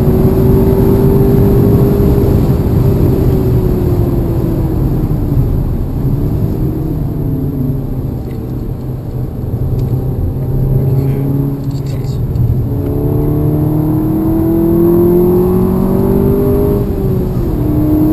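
Tyres hiss over a wet road.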